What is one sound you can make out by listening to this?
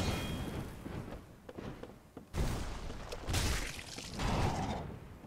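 Heavy blows and clashes ring out in a fierce fight.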